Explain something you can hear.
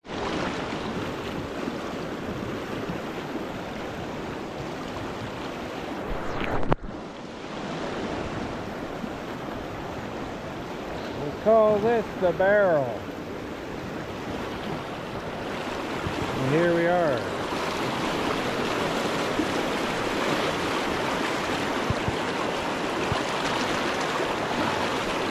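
A fast river rushes and churns over rocks close by.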